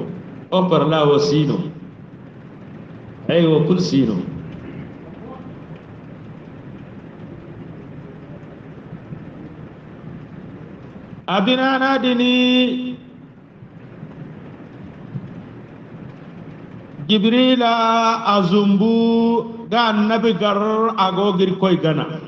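A middle-aged man recites in a melodic, chanting voice close to a microphone, with long pauses between phrases.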